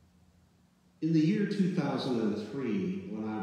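An elderly man speaks calmly through a microphone in a large echoing room.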